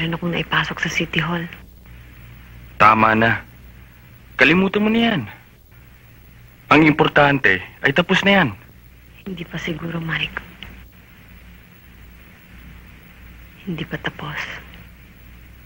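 A young man speaks softly and close by, in short phrases with pauses.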